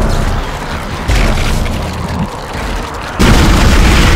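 A monstrous creature snarls and screeches.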